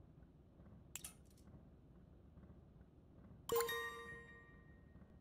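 Game menu selection sounds chime.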